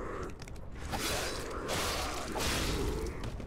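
A blade slashes and strikes with a sharp crackling burst.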